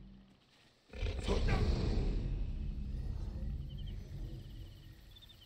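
A crocodile growls and snaps its jaws.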